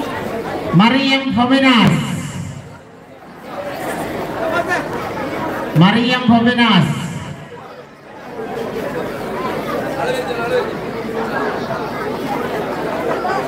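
A crowd murmurs and talks nearby.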